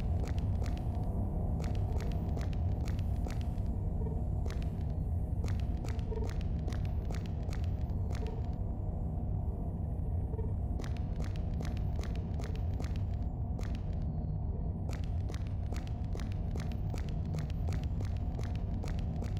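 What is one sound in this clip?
Heavy footsteps clang steadily on a metal floor.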